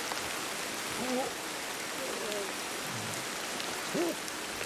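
A chimpanzee hoots in short rising calls.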